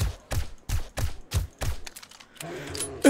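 Rifle shots fire in quick succession.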